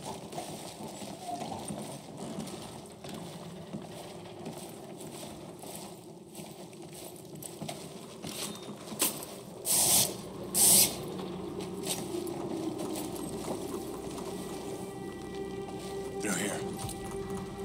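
Footsteps crunch over rubble.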